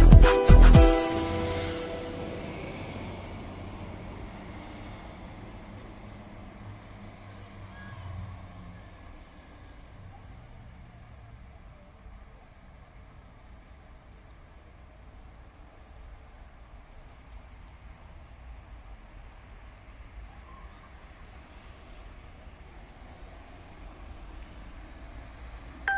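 Traffic rumbles faintly in the distance outdoors.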